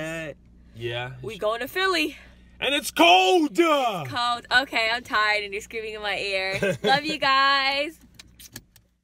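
A young man sings along close by.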